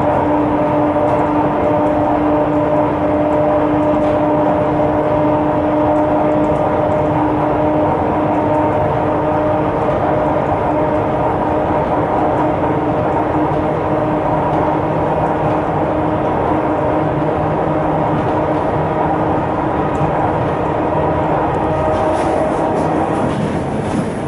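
A train's motors whine with a steady tone that slowly fades.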